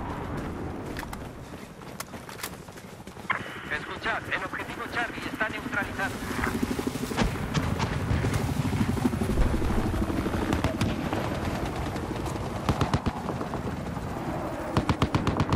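Gunshots crack in the distance, one at a time.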